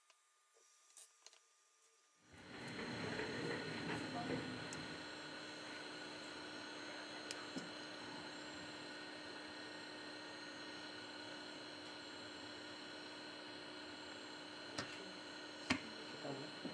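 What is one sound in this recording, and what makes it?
Small plastic parts click and tick as a phone's circuit board is pried loose and lifted out.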